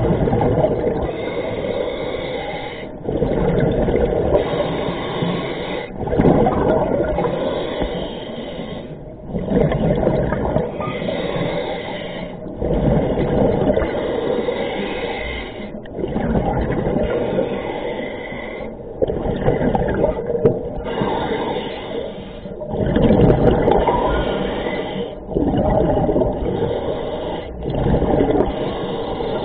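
Water rumbles and gurgles in low, muffled surges.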